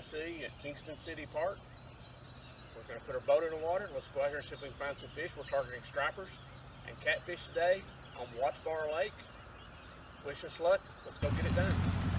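An older man speaks calmly, close by, outdoors.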